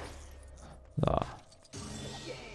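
A crate bursts apart with a crash.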